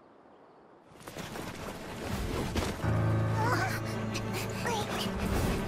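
Blades whoosh and clash in a sudden fight.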